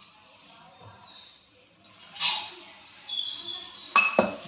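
Sugar pours with a soft hiss into a metal pan.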